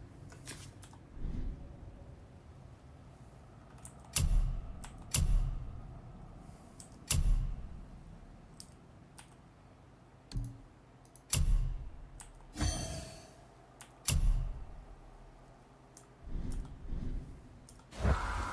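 Game menu sounds click and whoosh.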